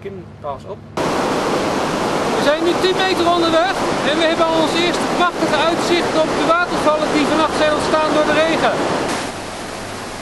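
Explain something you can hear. A man talks loudly outdoors over rushing noise.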